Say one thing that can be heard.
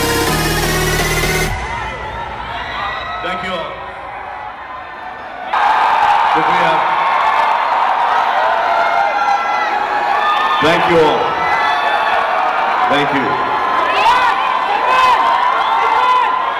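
A crowd cheers and screams loudly.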